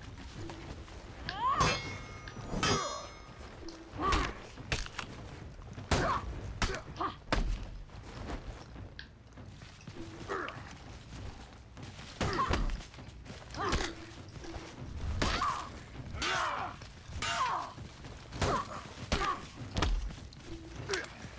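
Heavy weapons clash and strike with sharp metallic blows.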